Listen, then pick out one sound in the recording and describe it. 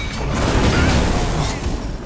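Lightning crackles loudly.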